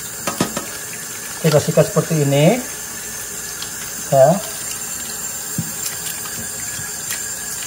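A brush scrubs a hard crab shell.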